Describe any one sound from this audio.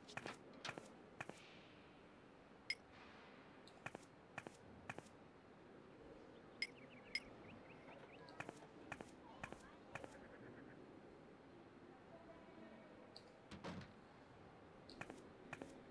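Short, sharp clicks sound now and then as a game menu opens and closes.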